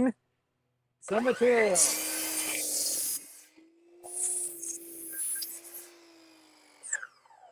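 A power miter saw whirs loudly and cuts through wood.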